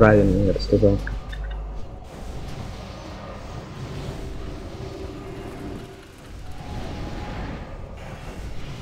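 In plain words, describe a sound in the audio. Magic spells whoosh and crackle amid fighting.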